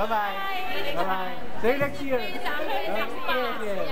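A middle-aged woman laughs and talks cheerfully close by.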